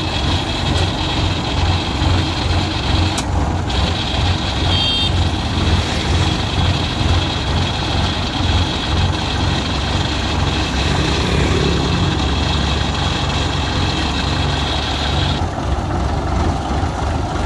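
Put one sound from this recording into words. A single-cylinder diesel engine chugs on a tracked machine.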